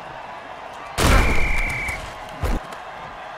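A heavy thud and crash sound as bodies collide.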